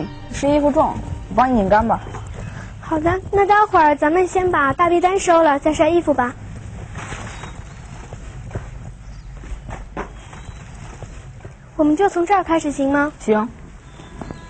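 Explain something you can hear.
A young woman speaks brightly and cheerfully.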